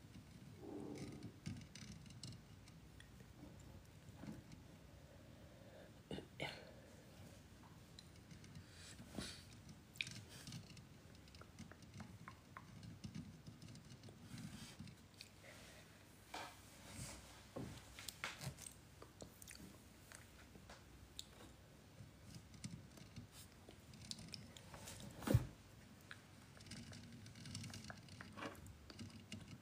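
Fingernails scratch and tap on a microphone, heard very close.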